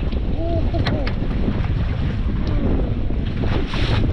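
A fish flaps and splashes as it is pulled from the water.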